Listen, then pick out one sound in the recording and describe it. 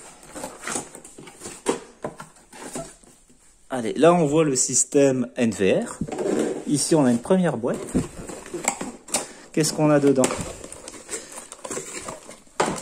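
Cardboard and packaging rustle and scrape as hands unpack a box.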